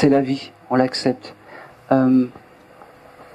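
A man speaks into a microphone in short bursts, heard through a loudspeaker in a room.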